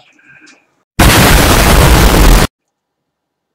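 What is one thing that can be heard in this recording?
An explosion booms with a loud roar.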